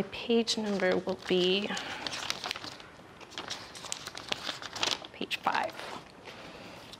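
A young woman speaks brightly and clearly into a microphone.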